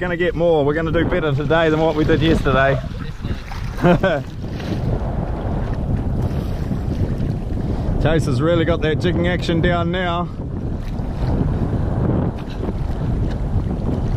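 Waves slosh against the side of a kayak.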